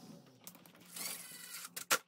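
A power screwdriver whirs, driving a screw.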